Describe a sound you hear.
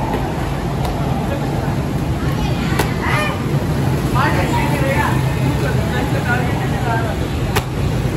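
A kick slaps sharply against a padded target.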